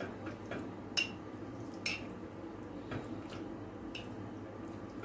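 A spoon clinks against a glass bowl.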